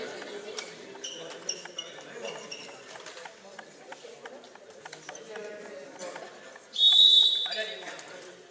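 Sneakers squeak on a hard gym floor.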